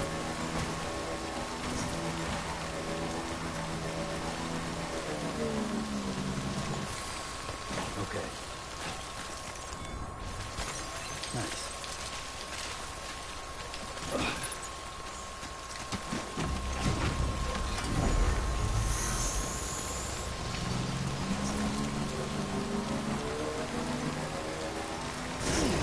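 A motorbike engine hums and whines as it climbs over rough ground.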